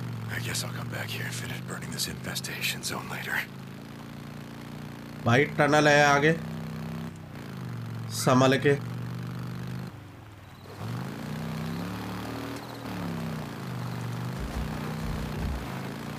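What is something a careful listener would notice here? A motorcycle engine hums steadily and revs up and down.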